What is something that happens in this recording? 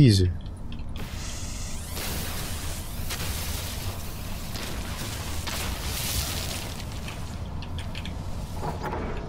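A mining laser hums and crackles steadily.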